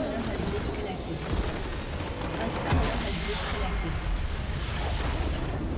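A crystal structure shatters with a loud magical blast.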